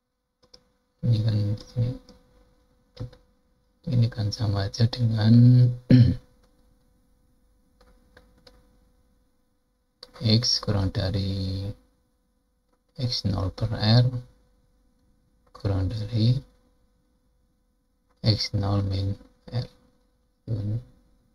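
An elderly man speaks calmly and explains into a close microphone, in bursts with pauses.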